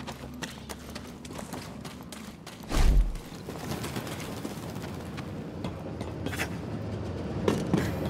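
Quick footsteps run over grass and stone.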